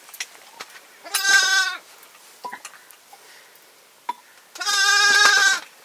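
An infant cries in short bursts.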